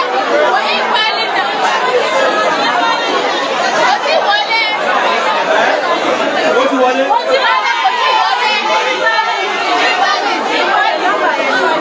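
A large crowd of women and girls chatters and calls out loudly.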